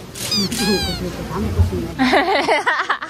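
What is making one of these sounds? Young women talk with animation close by.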